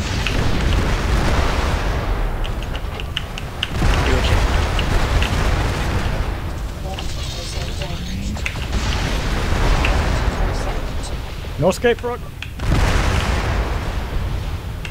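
Heavy engines rumble and roar steadily.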